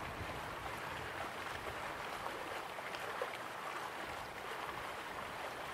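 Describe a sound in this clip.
Water splashes steadily down a small waterfall into a pool.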